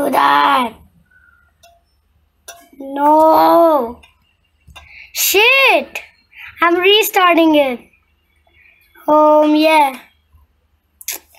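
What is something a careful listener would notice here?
A young child calls out loudly, close to the microphone, in short drawn-out bursts.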